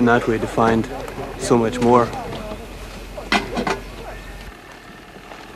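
A man speaks calmly, close by, outdoors.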